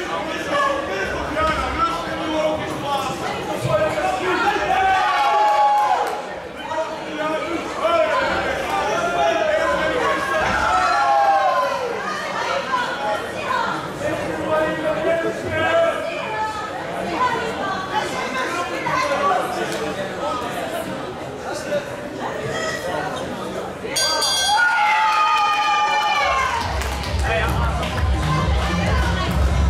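A crowd of spectators shouts encouragement in an echoing hall.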